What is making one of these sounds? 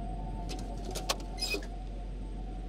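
A metal box lid clicks and creaks open.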